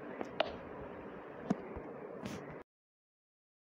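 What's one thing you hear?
Crops are pulled up with soft popping thuds.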